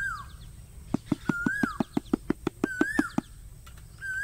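A metal tool taps rapidly on an iron pan.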